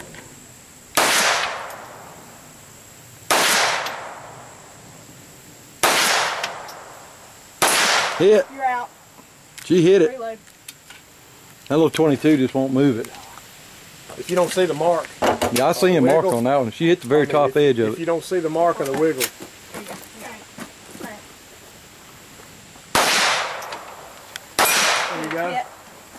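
Handgun shots crack one at a time outdoors, each with a long echo.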